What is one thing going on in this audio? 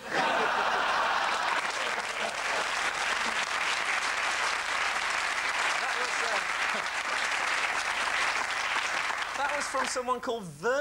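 A large crowd claps and cheers loudly.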